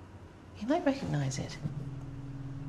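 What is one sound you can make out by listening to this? An older woman speaks quietly, close by.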